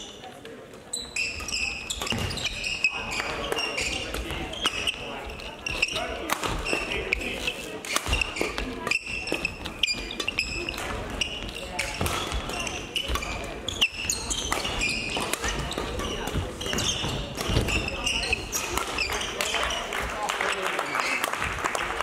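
Shoes squeak sharply on a sports floor.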